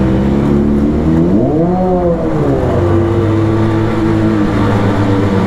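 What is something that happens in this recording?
A motorcycle engine hums steadily, revving up briefly and settling back down.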